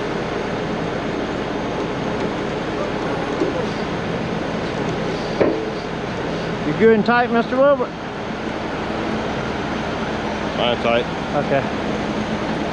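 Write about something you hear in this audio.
Truck engines idle steadily nearby.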